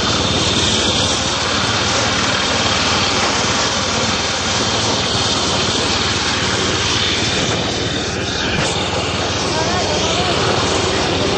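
A machine engine roars steadily close by.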